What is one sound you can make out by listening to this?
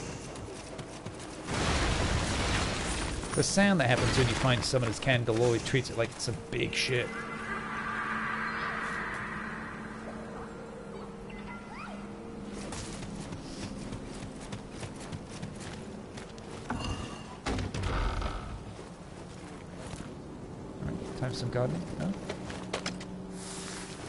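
Footsteps crunch on dry ground.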